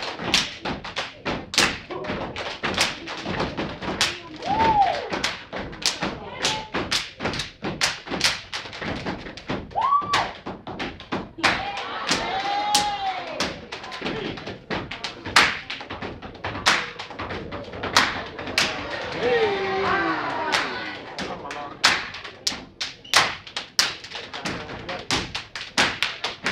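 A group of steppers stomps and claps in a sharp rhythm in an echoing hall.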